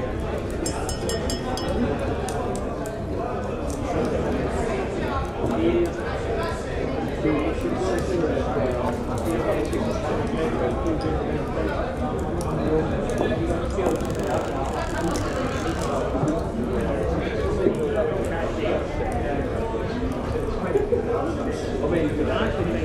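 A fire crackles in a hearth.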